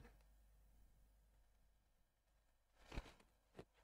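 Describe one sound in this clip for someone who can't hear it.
A brush dabs softly on canvas.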